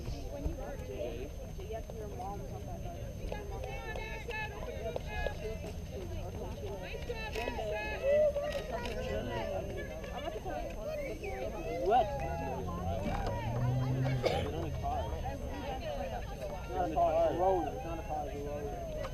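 A crowd of people chatters and calls out at a distance outdoors.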